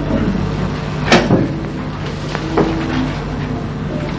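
A telephone receiver clatters as it is picked up.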